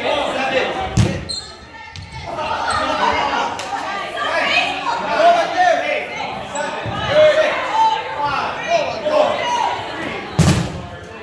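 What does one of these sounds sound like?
Rubber balls thud on a wooden floor.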